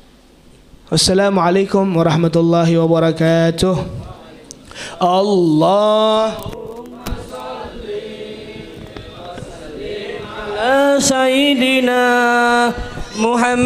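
A young man chants loudly through a microphone, holding long notes.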